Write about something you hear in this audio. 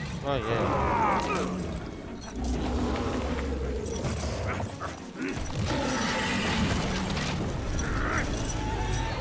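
A heavy chain rattles and clanks.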